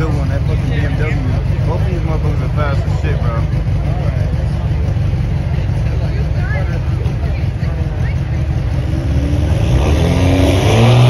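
Car engines idle with a deep rumble.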